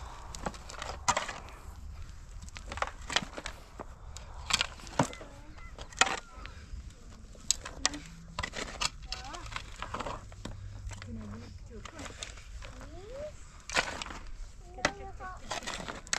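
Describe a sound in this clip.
Shovels scrape and crunch into stony dirt outdoors.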